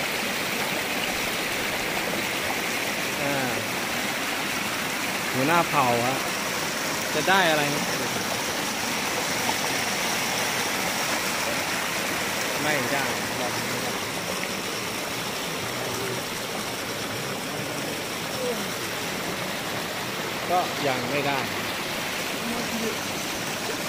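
Water rushes and gurgles steadily over rocks.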